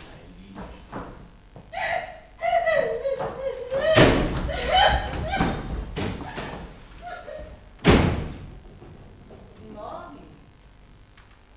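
A woman speaks with animation on a stage, heard from a distance in a hall.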